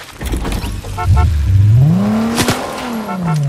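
A car engine starts and revs up, rising in pitch.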